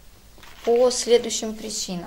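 Paper rustles as a hand picks it up.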